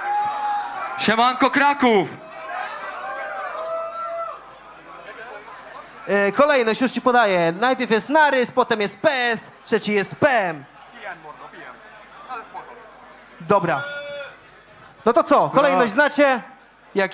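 A young man raps loudly through a microphone.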